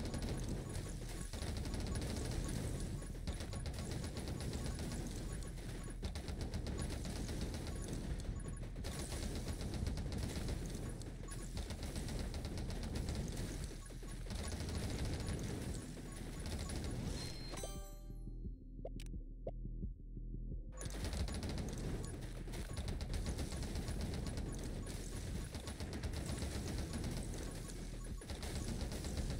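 Muffled electronic blasts thump again and again.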